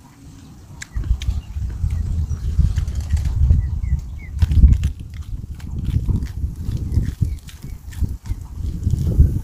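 A man crunches loudly on fresh lettuce leaves, close up.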